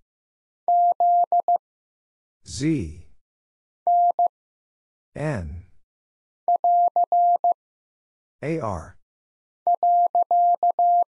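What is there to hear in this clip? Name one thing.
A telegraph key sends Morse code as short and long steady beeps.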